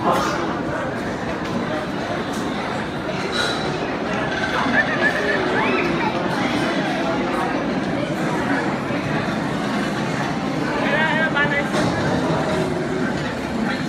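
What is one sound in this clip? A crowd of men and women talk quietly nearby.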